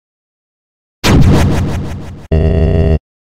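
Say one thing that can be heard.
A sharp synthesized rush of sound bursts out and fades.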